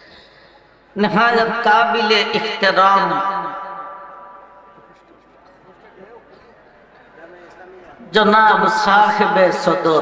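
A middle-aged man chants melodically into a microphone, heard through loudspeakers with echo.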